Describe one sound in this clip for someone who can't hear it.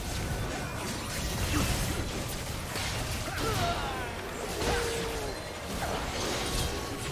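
Spell effects whoosh and crackle in a game battle.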